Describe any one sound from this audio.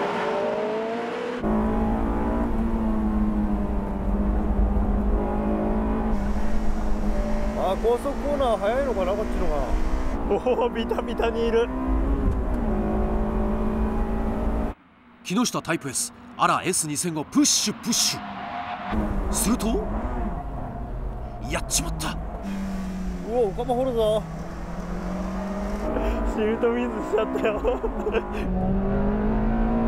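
A sports car engine roars loudly, rising and falling as it revs.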